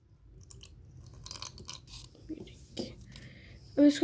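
A spoon scrapes and taps inside a plastic cup.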